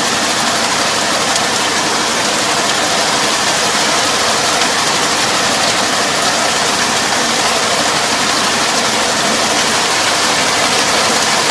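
A rotary tiller churns through wet mud.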